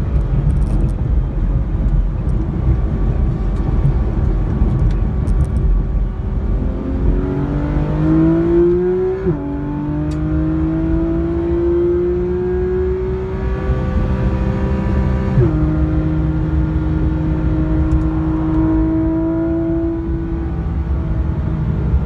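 Tyres and wind rumble steadily on the road.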